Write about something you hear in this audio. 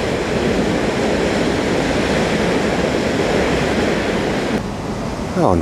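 Water roars and churns as it pours down a spillway.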